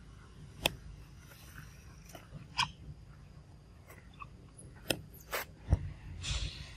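A baby monkey squeals in short, high cries.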